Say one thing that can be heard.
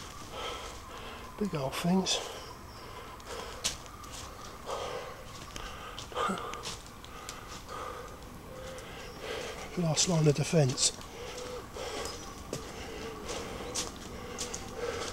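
Footsteps crunch and rustle through dry fallen leaves.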